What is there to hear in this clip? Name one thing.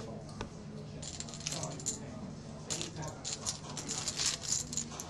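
A dealer sweeps playing cards across a felt table.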